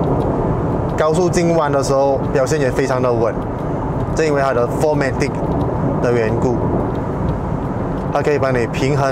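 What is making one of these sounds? A man talks calmly and clearly, close by.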